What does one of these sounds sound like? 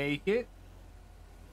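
A man speaks briefly and loudly into a close microphone.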